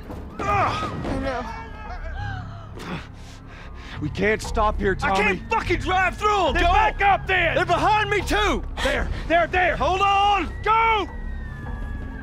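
A man shouts in panic close by.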